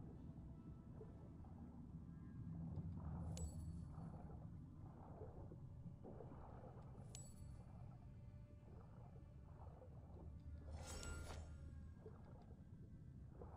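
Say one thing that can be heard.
A muffled underwater rumble drones steadily.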